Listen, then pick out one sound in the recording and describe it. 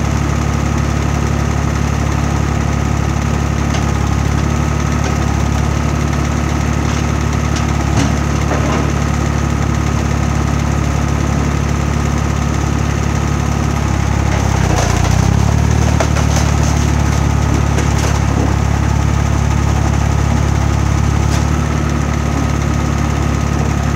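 A machine's engine drones steadily close by.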